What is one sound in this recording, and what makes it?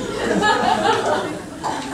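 A woman laughs heartily.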